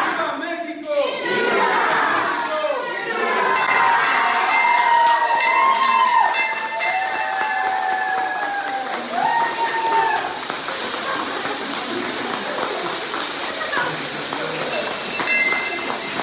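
A man shouts out calls to a crowd.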